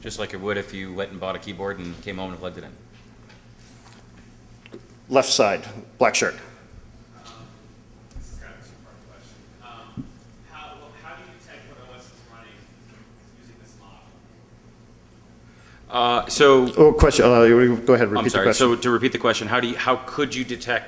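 A man speaks into a microphone to an audience, heard through loudspeakers in a large room.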